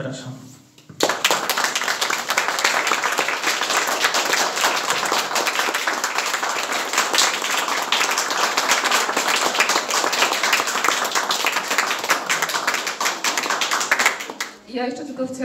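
An audience applauds loudly in an echoing room.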